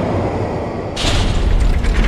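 A fiery blast roars and crackles.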